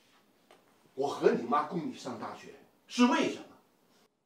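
A middle-aged man shouts angrily.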